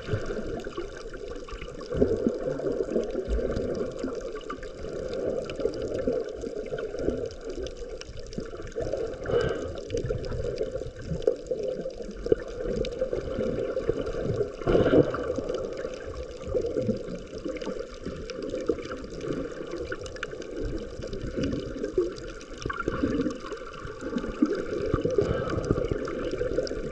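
Water gurgles and rumbles in a muffled way, heard from underwater.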